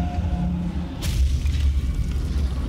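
An energy blast crackles and roars.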